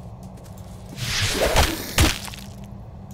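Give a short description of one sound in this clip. A sword swishes through the air and strikes with a heavy thud.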